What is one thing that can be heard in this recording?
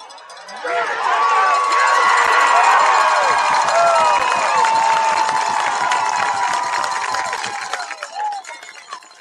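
A large crowd cheers and shouts loudly, then fades away.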